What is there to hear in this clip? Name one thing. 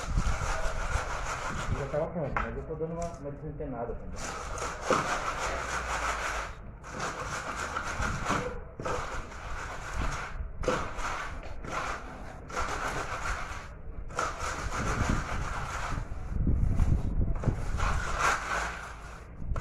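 A wooden board scrapes across wet concrete.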